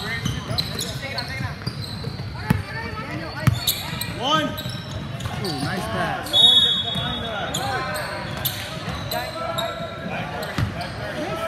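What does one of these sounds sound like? A basketball bounces on a hard floor, echoing.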